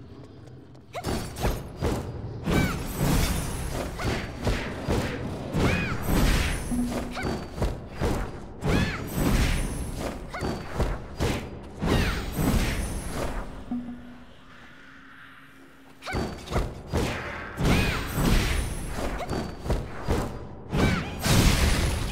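Sword strikes and magic blasts crash again and again in a fight.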